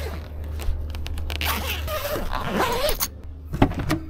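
Thick fabric rustles as a cover is pulled.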